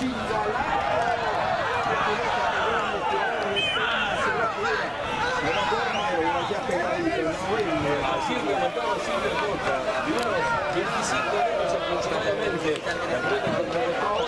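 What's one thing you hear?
A crowd of spectators shouts and chatters nearby.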